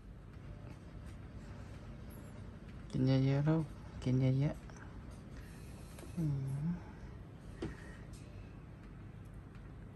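A small hamster nibbles and chews food.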